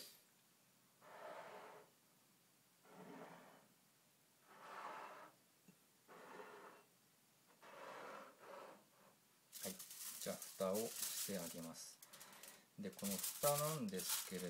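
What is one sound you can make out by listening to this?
Ceramic bowls scrape and slide across a hard surface.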